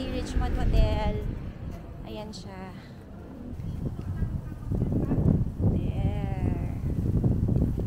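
A woman talks with animation close to the microphone.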